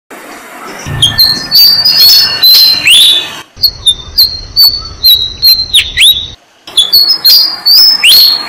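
Baby birds chirp shrilly and rapidly close by.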